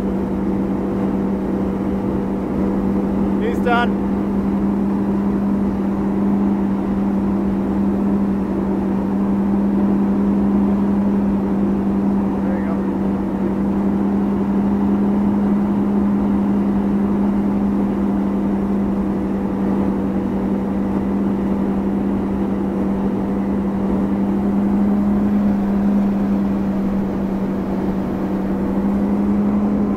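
Water rushes and sprays under a water ski.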